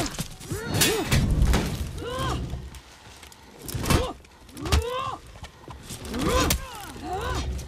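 Blades clash and strike in quick, sharp hits.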